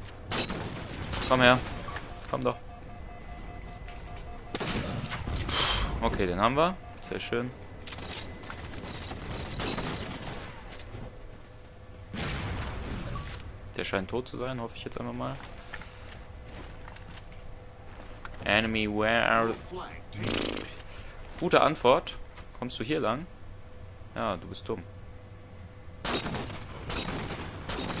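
Rifle shots crack and ring out.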